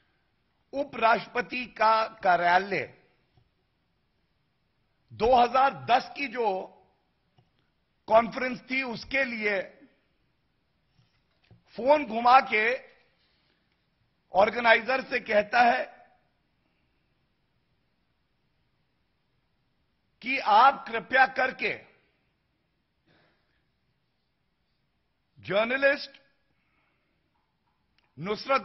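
A man speaks calmly into a microphone, pausing often between phrases.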